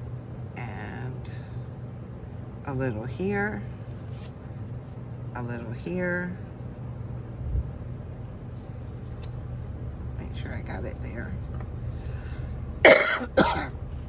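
Paper rustles as hands handle it.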